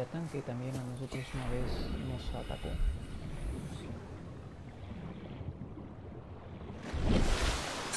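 Water gurgles and bubbles in a muffled underwater hush.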